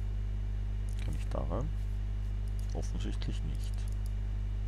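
A man speaks briefly and quietly through a microphone.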